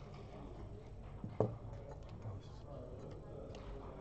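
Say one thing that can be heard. Dice clatter onto a wooden board.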